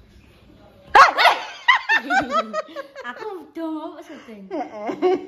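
A young woman laughs loudly up close.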